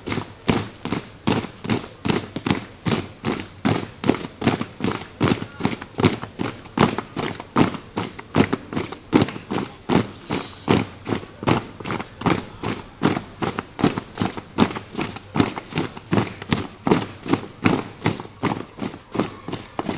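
Many feet stamp in a steady rhythm on a dirt ground.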